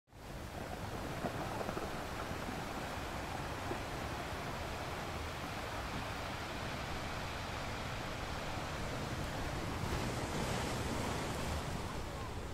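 Ocean waves roll in and crash steadily against rocks.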